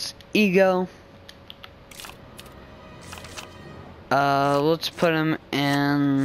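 A paper page flips over with a soft rustle.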